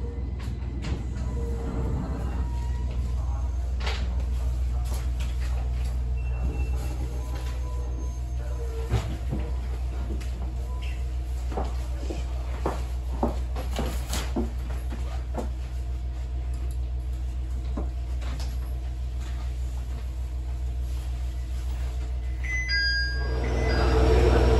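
A train rumbles steadily along the tracks, heard from inside the carriage.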